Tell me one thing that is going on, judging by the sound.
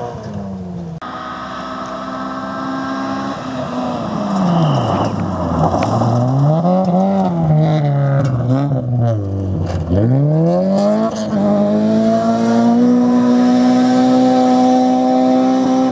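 A rally car engine revs up and down sharply, slowing for a turn, then accelerates away.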